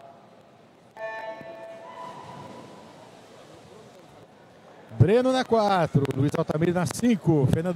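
Swimmers splash and churn through the water.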